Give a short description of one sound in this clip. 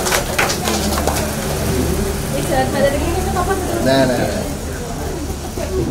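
Sparklers fizz and crackle.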